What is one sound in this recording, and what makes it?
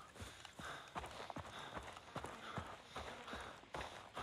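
Footsteps crunch on a gravel path.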